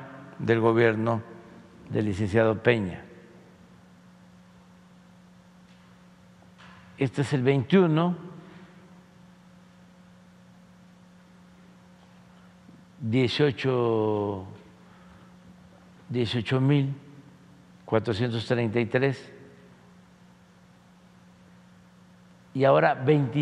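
An elderly man speaks slowly into a microphone, in short phrases with long pauses.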